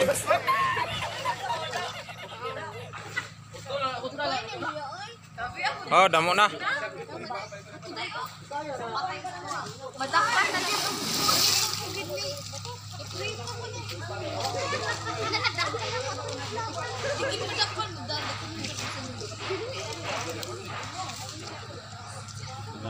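Water splashes around swimmers.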